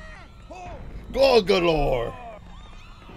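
A cartoon character shouts in alarm.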